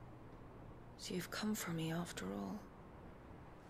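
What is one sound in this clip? A young woman speaks softly and coolly, close by.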